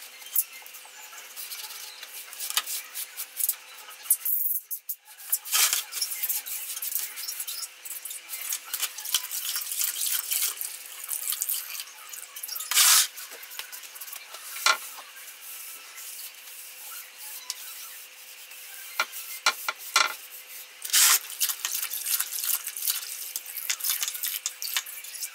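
Water splashes in a plastic basin.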